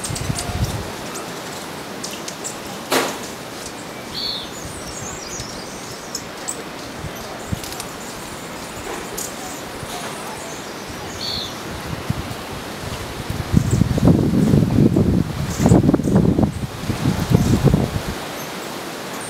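A hummingbird's wings whir softly as it hovers.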